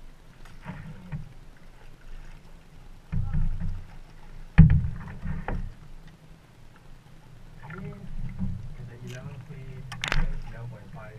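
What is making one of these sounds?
Water laps and splashes against a small boat close by.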